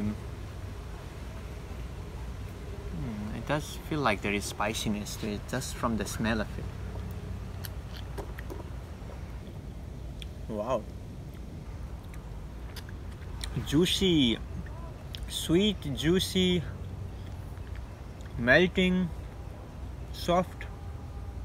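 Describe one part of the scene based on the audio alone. A man slurps and chews juicy fruit.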